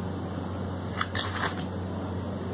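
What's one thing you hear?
A knife scrapes and taps against a plate while cutting a soft cake.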